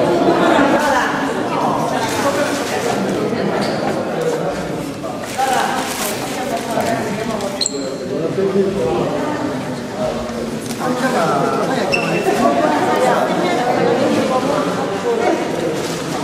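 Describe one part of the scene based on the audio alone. Several men and women talk and greet each other with animation nearby.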